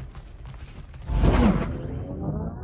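A chainsaw revs loudly.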